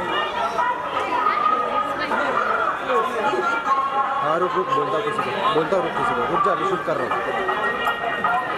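A crowd of men and women chatters and calls out nearby outdoors.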